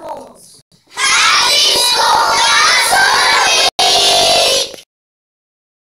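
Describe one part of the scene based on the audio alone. A group of young children shout together loudly in unison.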